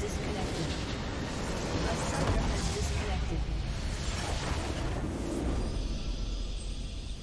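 A structure explodes with a deep rumbling blast.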